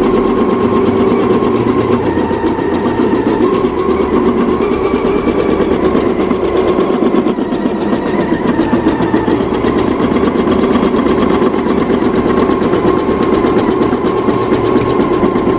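An embroidery machine stitches with a fast, steady, rattling hum.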